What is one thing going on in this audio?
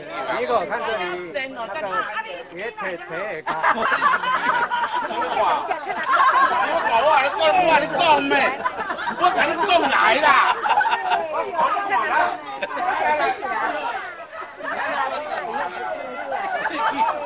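Several people chatter in the background.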